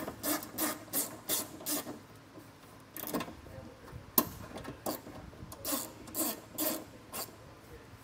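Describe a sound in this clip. Small metal parts click and clink.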